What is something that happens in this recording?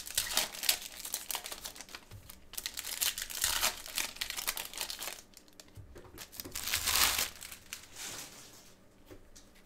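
Foil wrappers crinkle and rustle as they are torn open by hand.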